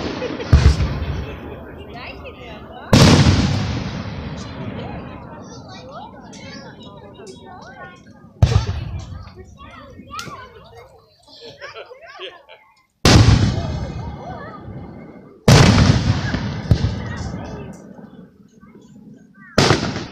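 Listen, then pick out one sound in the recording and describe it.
Aerial firework shells burst with loud booms that echo outdoors.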